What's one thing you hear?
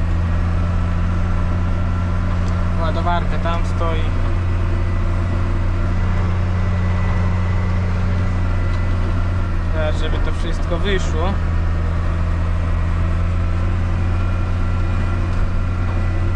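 A tractor engine hums steadily and loudly from inside the cab.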